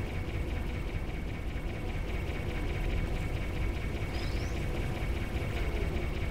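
A laser beam hums steadily.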